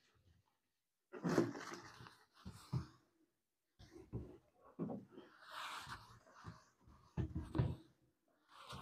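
A cloth rubs across a board.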